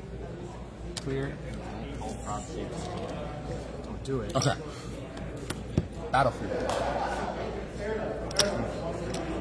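Game pieces click and tap on a board.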